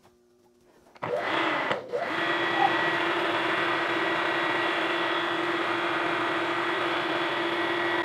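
A milling machine motor starts up and whirs steadily.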